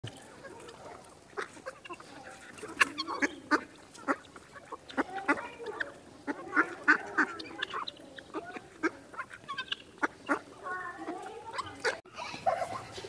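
Chickens cluck and chatter close by.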